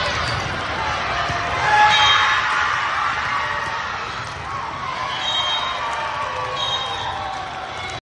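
A large crowd chatters and cheers, echoing in a big indoor hall.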